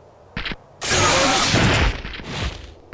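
An energy blast bursts with a loud crackling whoosh.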